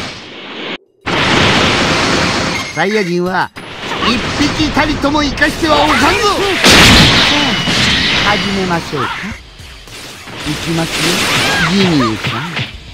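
Blows and explosions crash in quick succession.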